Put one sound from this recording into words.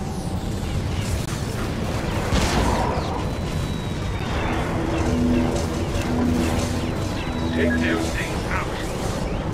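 Laser turrets fire in quick zapping bursts.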